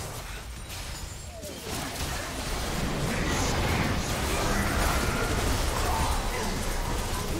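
Magic spells blast, whoosh and crackle in a fast fight.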